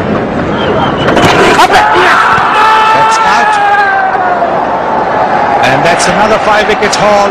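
A large crowd cheers and roars loudly outdoors.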